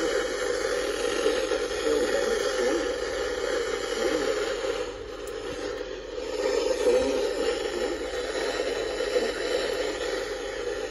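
A radio plays static-filled sound through a small loudspeaker.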